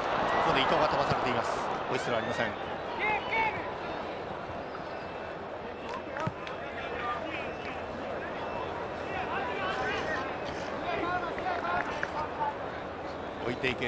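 A large stadium crowd murmurs and cheers loudly throughout.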